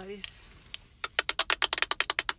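A toy clicks rapidly.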